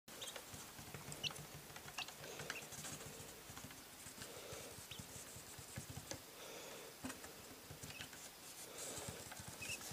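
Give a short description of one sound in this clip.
Fingertips tap lightly on a hard surface.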